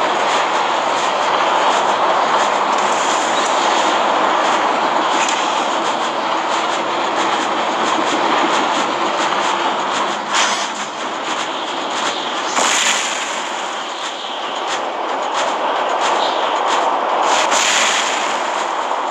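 Heavy metal footsteps stomp and clank steadily.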